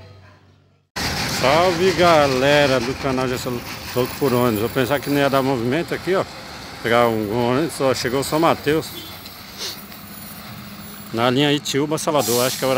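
A bus engine rumbles as the bus pulls away.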